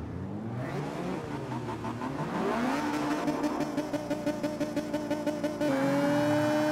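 A car engine idles and revs in quick bursts.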